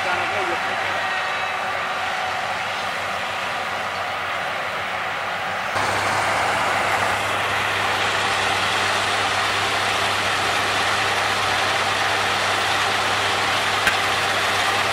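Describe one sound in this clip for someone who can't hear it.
A combine harvester's engine drones steadily nearby.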